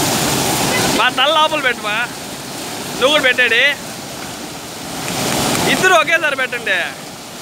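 A man shouts over the rushing water.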